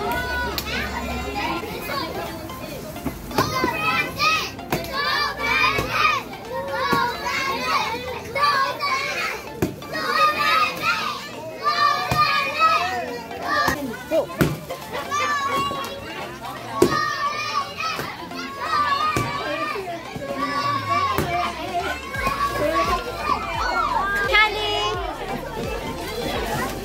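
A crowd of children and adults cheer and shout outdoors.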